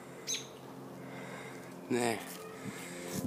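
A bird calls overhead.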